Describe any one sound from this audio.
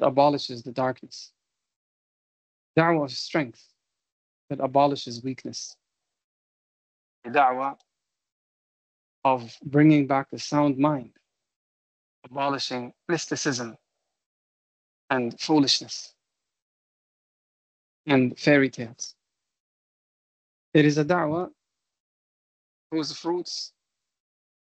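A man speaks calmly in short phrases with pauses, heard through an online call.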